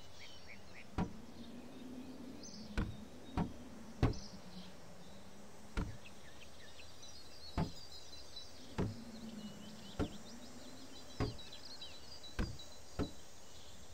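A hammer knocks on wood in slow, steady blows.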